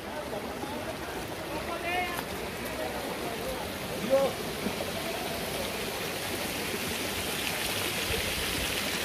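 A stream rushes over rocks nearby.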